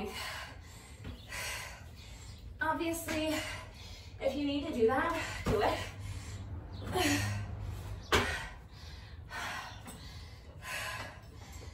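Sneakers scuff and thud on concrete.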